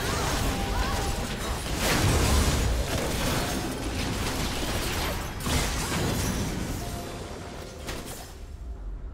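Spell effects and weapon hits crash and whoosh in a fast game fight.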